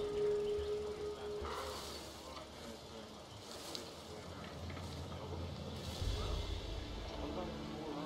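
Leaves and fern fronds rustle as a figure creeps through thick undergrowth.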